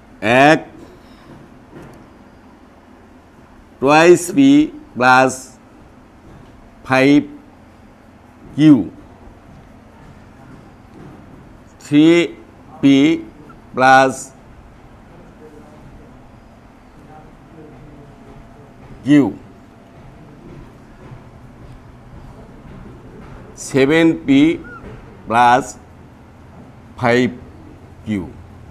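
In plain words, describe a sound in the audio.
A man speaks calmly in short phrases with long pauses.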